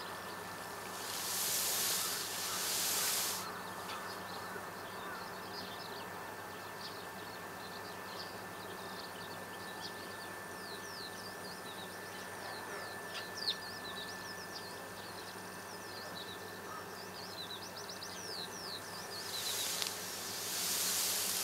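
Water hisses from a hose sprayer in short bursts.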